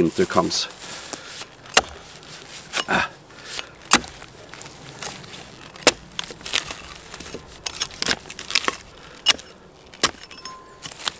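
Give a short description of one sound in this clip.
An axe chops into a log with sharp, repeated knocks.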